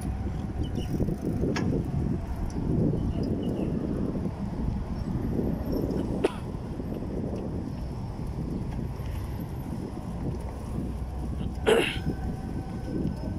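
Bicycle tyres roll and rumble over paving stones.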